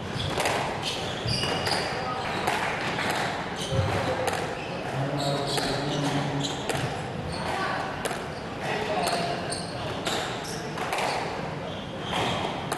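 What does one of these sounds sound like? A squash ball smacks sharply against the walls again and again.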